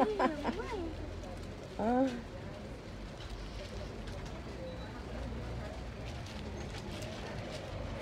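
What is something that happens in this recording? Plastic packaging rustles as it is handled.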